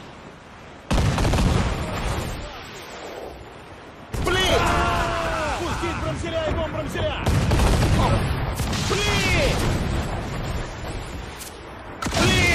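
Cannons fire with loud, heavy booms.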